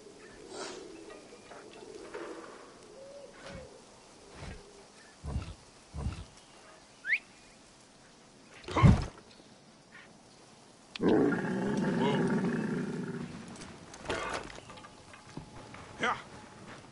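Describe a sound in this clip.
A camel's hooves thud softly on a dirt path.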